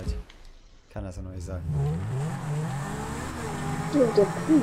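A car engine revs and hums.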